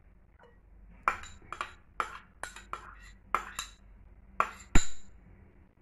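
A metal spoon taps and scrapes against a ceramic bowl.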